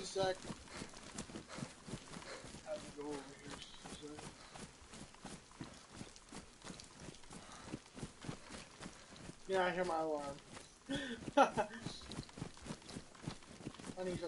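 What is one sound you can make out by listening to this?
Footsteps run quickly through grass.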